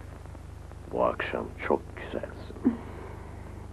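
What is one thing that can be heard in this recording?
A man murmurs softly close by.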